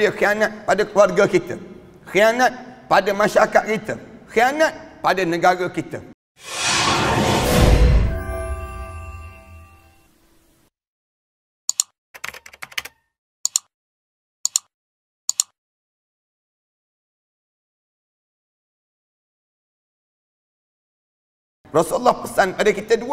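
A middle-aged man speaks with animation into a headset microphone.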